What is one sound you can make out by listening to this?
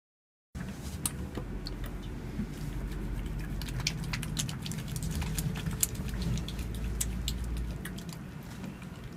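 Hands tap and pat skin in light clicks.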